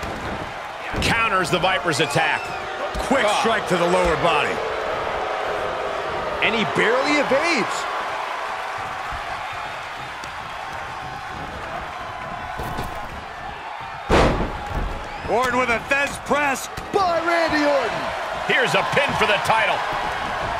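Heavy thuds of bodies hitting a wrestling mat ring out.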